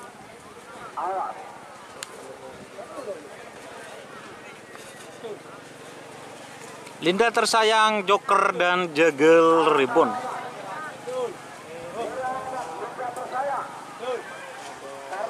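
A large crowd chatters and calls out in the distance, outdoors.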